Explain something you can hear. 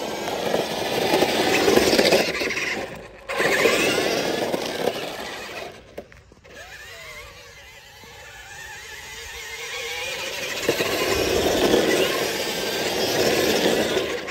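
Small tyres hiss over wet pavement.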